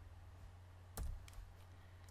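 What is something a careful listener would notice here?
A soft click sounds.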